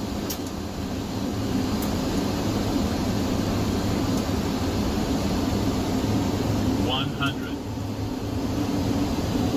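A steady low roar of jet engines and rushing air.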